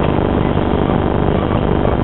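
A motorcycle engine hums at a distance.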